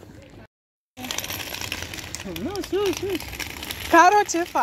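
Small plastic wheels roll over pavement.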